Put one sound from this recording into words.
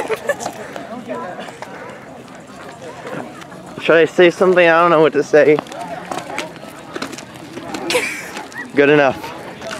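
A teenage girl laughs close by.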